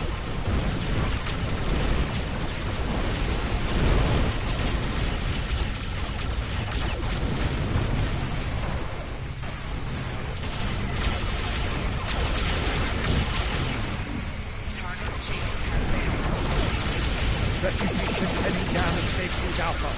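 Laser weapons fire in rapid bursts during a space battle.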